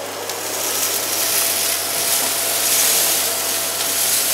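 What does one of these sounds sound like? Grit and debris rattle as a vacuum cleaner sucks them up.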